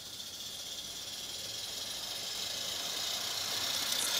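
A small steam engine puffs as it approaches.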